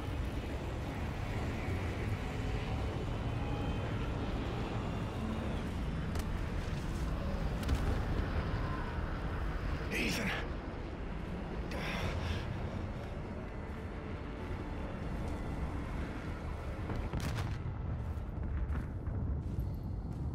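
A deep, steady rumble roars as a huge burning ship falls from the sky.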